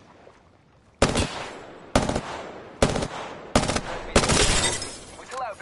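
A rifle fires a rapid series of loud shots.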